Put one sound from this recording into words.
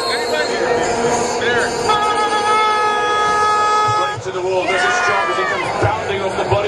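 A crowd of young men sing and chant loudly nearby outdoors.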